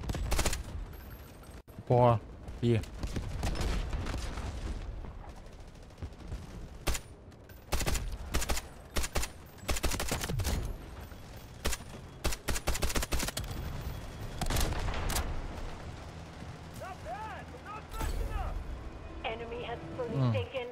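Loud rifle shots crack sharply, several times.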